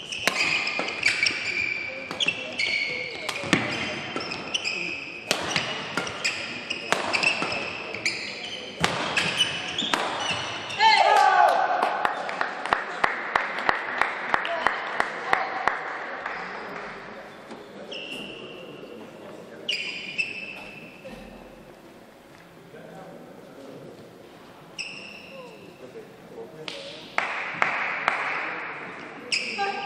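Sports shoes squeak sharply on a hard court floor.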